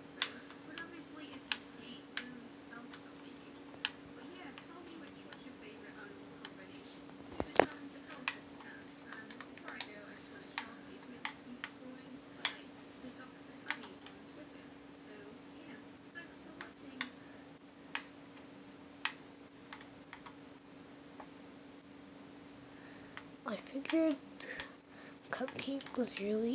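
A video game makes soft clicks and thuds through a television speaker.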